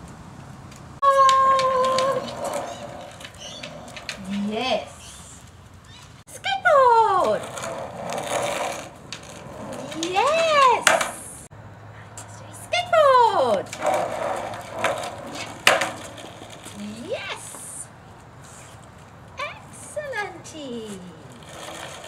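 A woman praises a dog with animation, in a high, sing-song voice.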